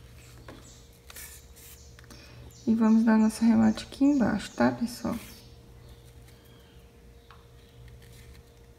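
Satin ribbon rustles softly as hands fold and pinch it.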